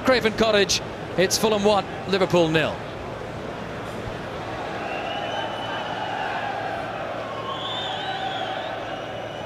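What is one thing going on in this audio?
A large stadium crowd murmurs and cheers in the open air.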